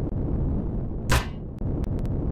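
A small explosion bursts with a short crack.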